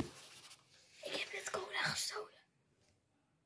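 A young boy speaks close to the microphone.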